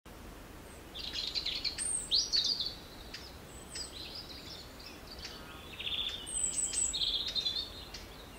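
A small bird chirps and twitters.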